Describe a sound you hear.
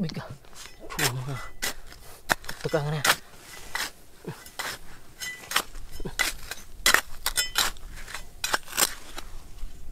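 A metal trowel scrapes and digs into loose gravelly dirt.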